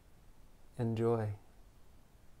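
A man speaks a few calm words close to the microphone.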